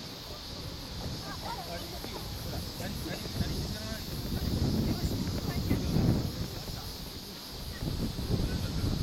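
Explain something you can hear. Wind gusts and rumbles across the microphone outdoors.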